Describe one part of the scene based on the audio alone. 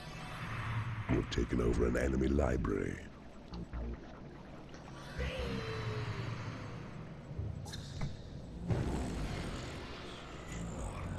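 A magic bolt whooshes and crackles as it is cast.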